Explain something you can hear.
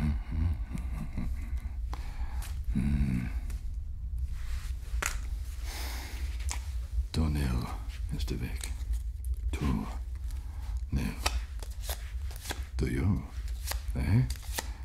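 A man raps rhythmically and close up.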